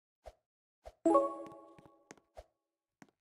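A short bright game chime rings and fades.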